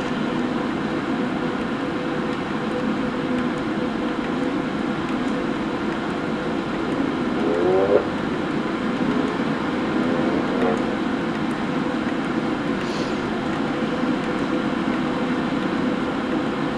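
An electric motor hums steadily nearby.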